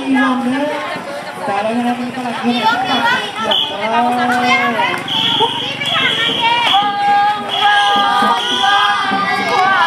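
A crowd of children and adults chatter and shout excitedly outdoors.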